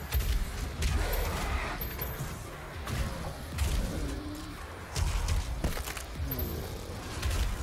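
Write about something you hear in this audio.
Monsters growl and shriek.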